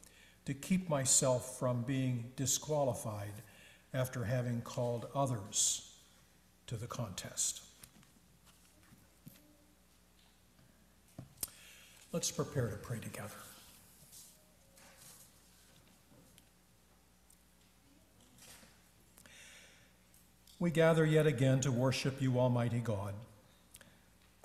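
An elderly man speaks calmly and slowly through a microphone, with pauses.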